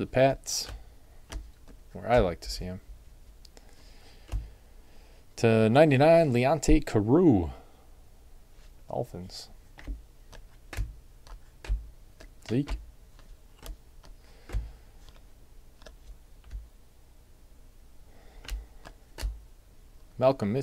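Trading cards flick and slap softly as they are shuffled by hand.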